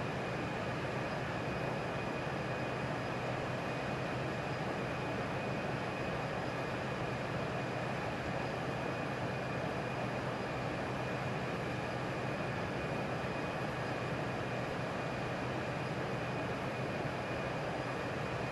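Jet engines hum and roar steadily.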